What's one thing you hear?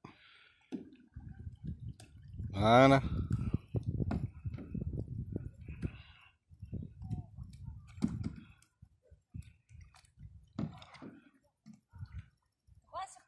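A paddle splashes and dips in the water.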